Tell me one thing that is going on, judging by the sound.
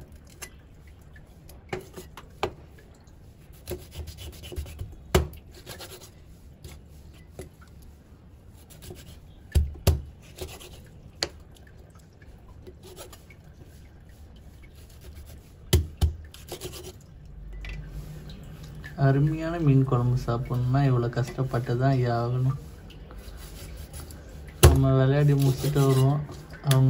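A cleaver chops through fish on a wooden board with sharp knocks.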